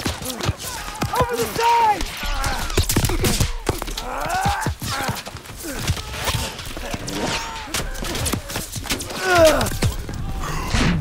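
Men shout urgently amid the battle.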